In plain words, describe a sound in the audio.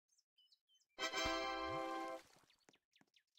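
A bright, short chime rings out.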